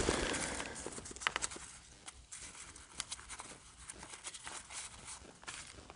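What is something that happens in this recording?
Paper sheets rustle and crinkle as a hand pushes through them.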